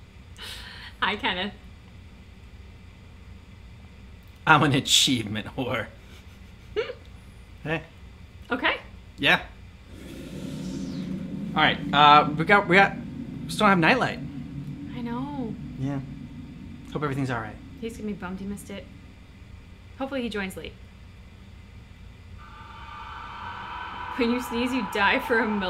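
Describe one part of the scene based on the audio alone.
A young woman talks and laughs close to a microphone.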